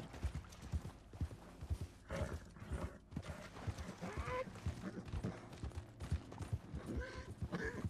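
A horse's hooves gallop through snow.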